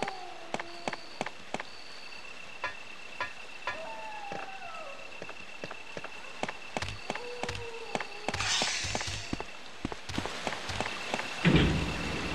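Footsteps tap on a hard stone floor.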